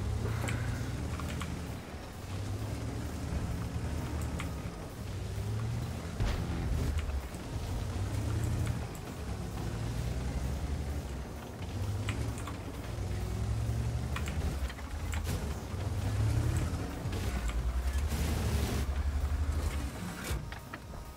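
A heavy tank engine rumbles and roars steadily.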